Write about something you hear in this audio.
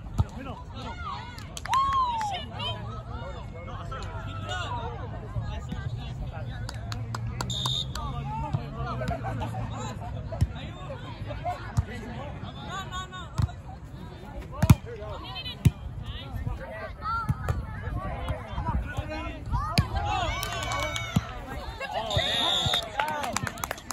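Young men and women chatter and call out nearby outdoors.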